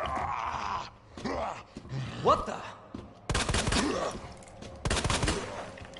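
A zombie groans hoarsely.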